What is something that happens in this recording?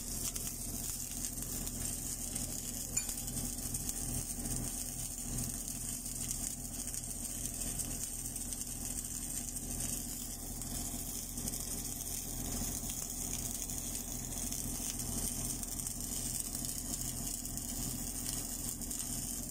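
An electric welding arc crackles and hisses steadily.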